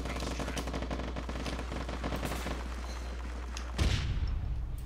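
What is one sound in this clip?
Rapid gunfire crackles.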